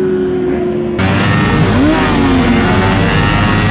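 A motorcycle engine revs nearby.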